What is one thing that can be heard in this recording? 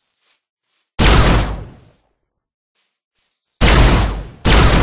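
A laser gun fires with loud blasts.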